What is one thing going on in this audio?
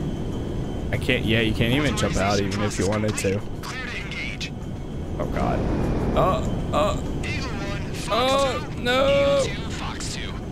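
A man speaks casually into a microphone.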